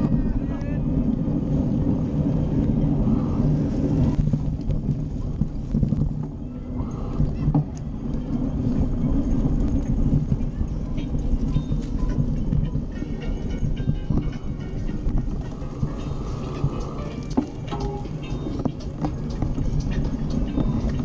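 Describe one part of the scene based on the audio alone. Wind rumbles loudly past a moving bicycle.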